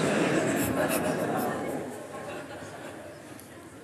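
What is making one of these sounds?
An audience laughs loudly in a hall, then slowly quiets down.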